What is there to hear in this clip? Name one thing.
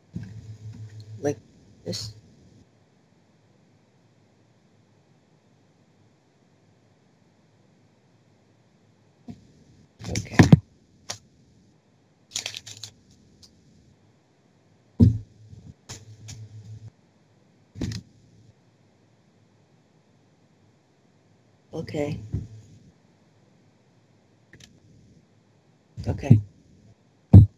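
A young boy speaks in short bursts over an online call.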